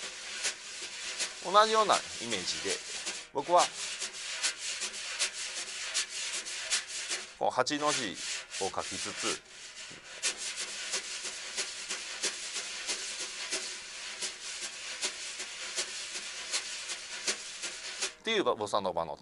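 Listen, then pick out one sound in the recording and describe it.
Brushes swish and tap on a snare drum in a steady rhythm.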